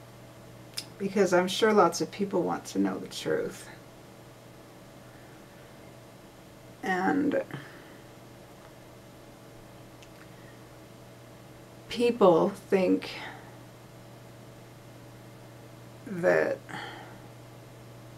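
A young woman speaks calmly and close by, in short bursts with long pauses.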